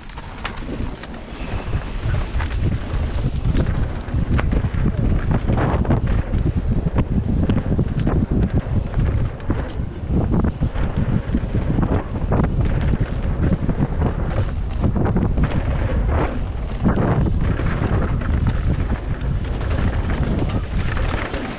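A bike frame and chain rattle over bumps.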